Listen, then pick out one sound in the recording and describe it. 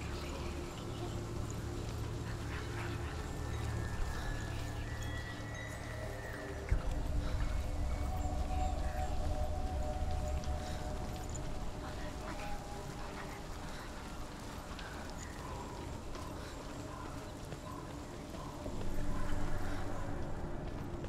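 Footsteps patter quickly on wet ground and gravel.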